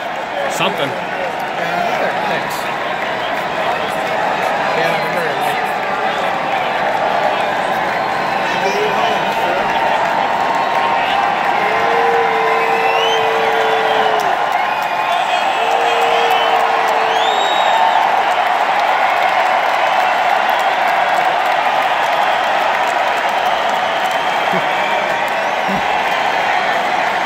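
A band plays loudly through a big sound system.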